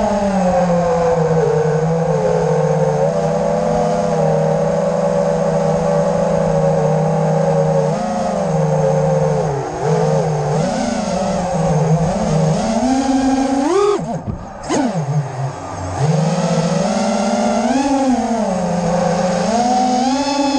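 Small drone motors whine loudly, rising and falling in pitch as the throttle changes.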